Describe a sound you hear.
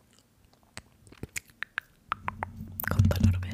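Mouth clicks and soft taps sound very close to a microphone.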